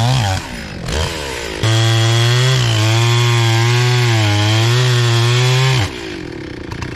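A chainsaw revs loudly close by, its pitch wavering.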